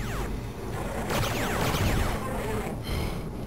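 A monster snarls close by.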